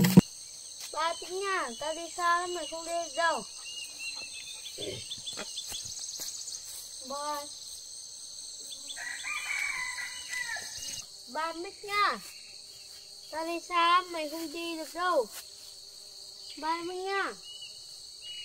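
A young boy speaks calmly, close by, in short phrases outdoors.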